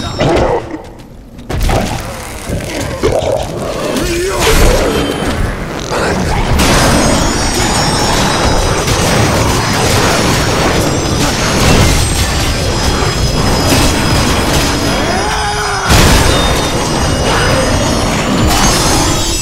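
A monster grunts and roars.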